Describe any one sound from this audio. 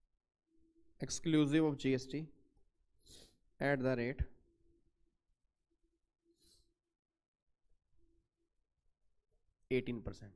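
A man speaks calmly into a microphone, explaining in short bursts.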